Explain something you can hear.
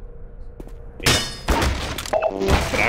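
A wooden crate smashes and splinters.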